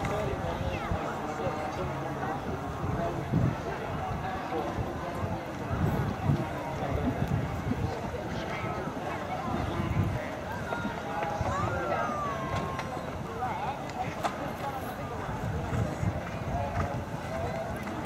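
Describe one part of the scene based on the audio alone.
A horse's hooves thud on grass as it canters.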